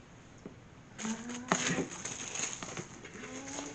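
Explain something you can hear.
Plastic crinkles and rustles close by.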